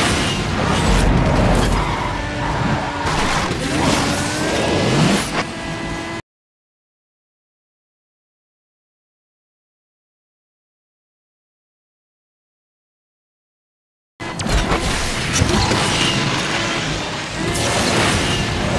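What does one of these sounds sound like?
A race car engine roars at high speed.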